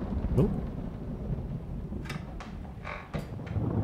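A door lock clicks.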